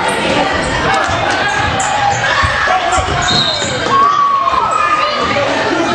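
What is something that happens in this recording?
Sneakers squeak on a hardwood floor.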